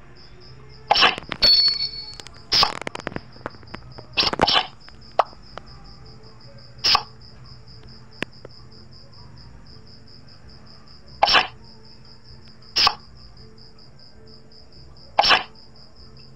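Playing cards snap down in short, sharp clicks.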